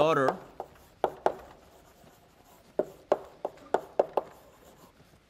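Chalk taps and scrapes against a blackboard.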